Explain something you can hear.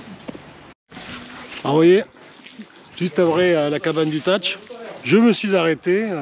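A middle-aged man talks calmly close to the microphone.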